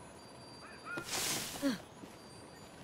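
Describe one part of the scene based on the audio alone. Dry leaves rustle as a body plunges into a heap.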